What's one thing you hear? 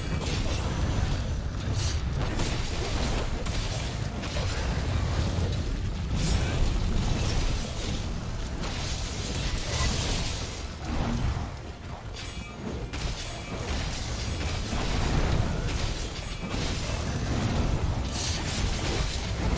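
A blade slashes and strikes with sharp hits.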